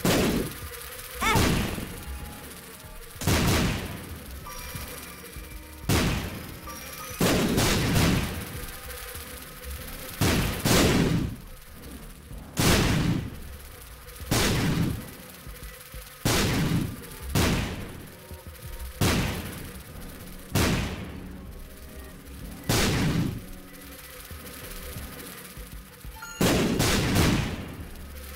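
Loud wet bursts from a video game go off every couple of seconds.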